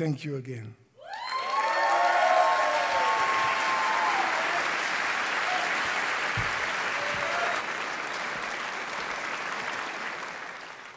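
A large audience cheers and applauds loudly.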